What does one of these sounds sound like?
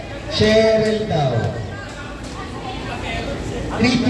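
A volleyball is struck with a hand with a sharp slap.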